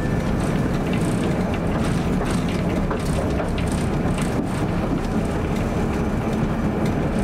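A tram rumbles steadily along its rails.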